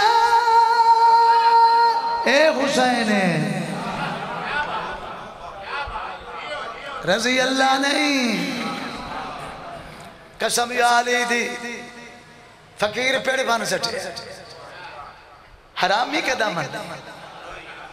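A man chants loudly into a microphone through loudspeakers, with echo.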